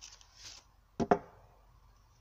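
Wooden planks knock together.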